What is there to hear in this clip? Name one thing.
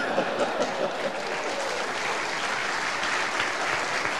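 An older man laughs.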